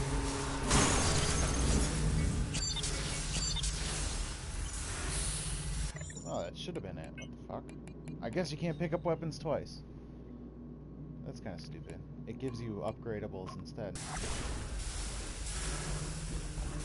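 Metal blades swish and clang in a fight.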